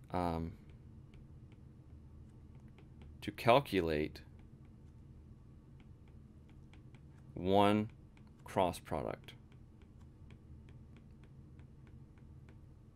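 A stylus taps softly on a tablet.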